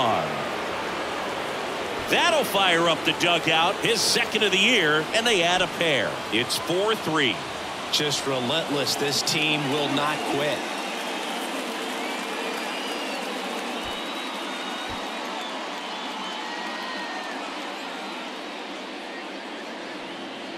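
A large crowd cheers and murmurs in a stadium.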